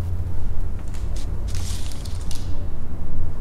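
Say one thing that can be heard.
A sheet of paper is picked up from a wooden floor.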